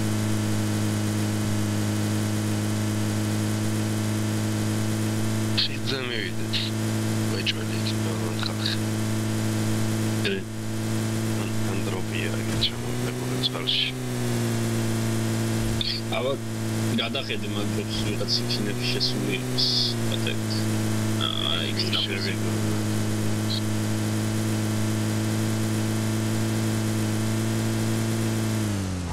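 An engine hums steadily as an off-road vehicle drives over rough ground.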